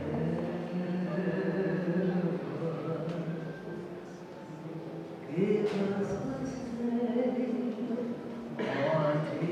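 An elderly woman speaks expressively into a microphone, heard through a loudspeaker in a reverberant room.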